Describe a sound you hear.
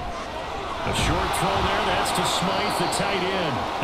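Football players collide in a tackle with a thud.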